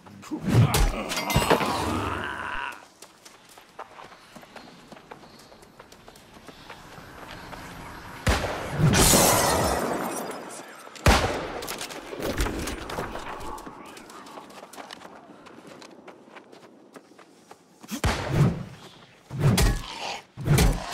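A heavy weapon strikes with loud impacts.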